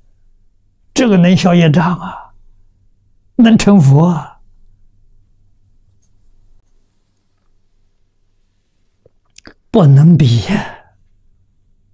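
An elderly man speaks calmly through a clip-on microphone.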